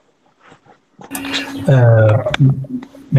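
A man speaks over an online call.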